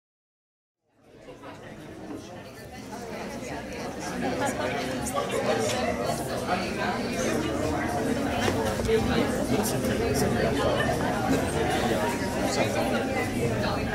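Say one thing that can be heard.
A crowd of men and women chatters indoors.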